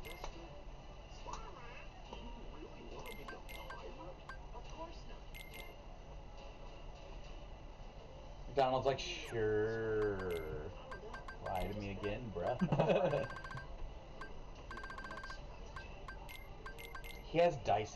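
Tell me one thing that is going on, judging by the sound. Short electronic menu blips tick repeatedly.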